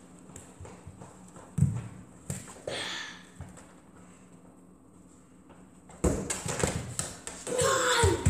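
Footsteps thump on a hard floor.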